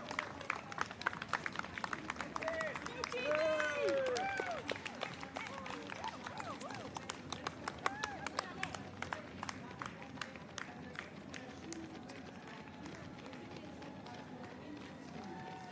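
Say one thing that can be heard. Many runners' feet patter quickly on a paved road.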